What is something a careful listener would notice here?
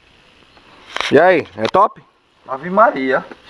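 A man speaks calmly nearby outdoors.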